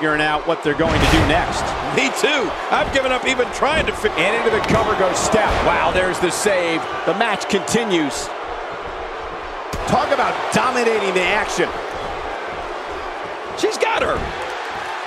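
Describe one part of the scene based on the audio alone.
Bodies slam heavily onto a wrestling ring mat.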